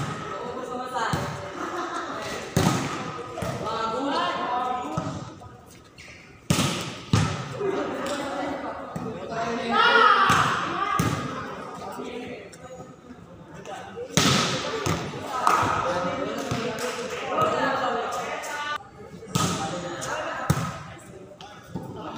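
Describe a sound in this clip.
Young men shout and call out to each other across an echoing court.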